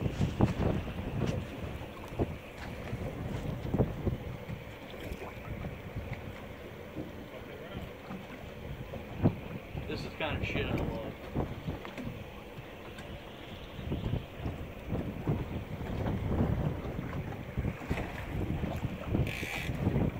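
Waves slosh and lap against a boat's hull.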